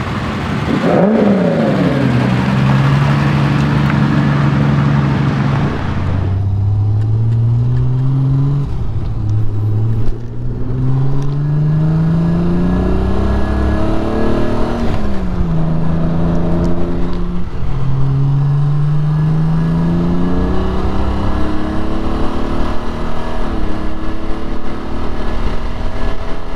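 A sports car engine revs loudly and rises and falls in pitch as it changes gears.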